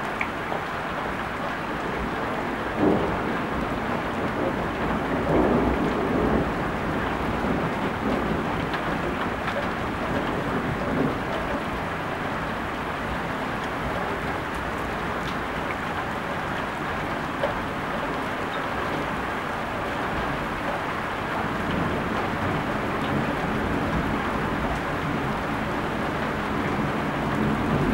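Wind gusts past outdoors.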